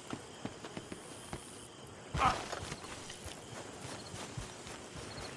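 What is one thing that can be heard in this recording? Footsteps thud on grass at a quick pace.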